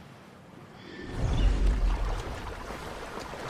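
Water splashes and churns as a swimmer surfaces.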